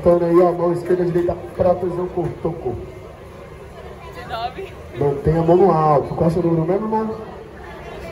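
A man raps loudly into a microphone through loudspeakers.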